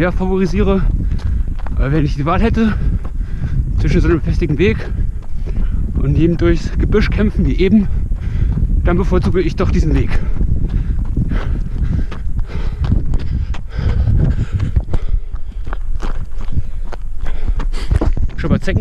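Running footsteps thud on a gravel path.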